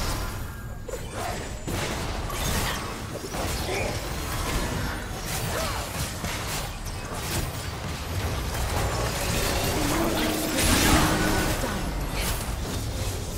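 Spell blasts and weapon hits crackle and bang in a busy game battle.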